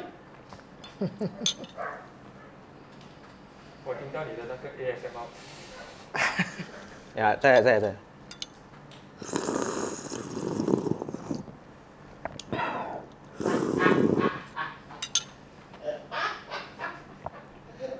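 A young man talks and laughs close by.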